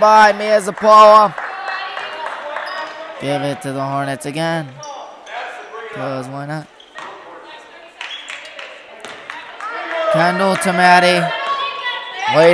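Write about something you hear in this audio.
Players shout across an echoing gym.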